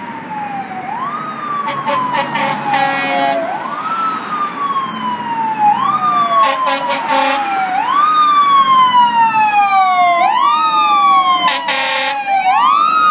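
A siren wails in rising and falling sweeps as a fire engine approaches.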